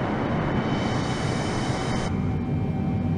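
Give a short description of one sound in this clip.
Jet engines roar loudly, heard from outside the aircraft.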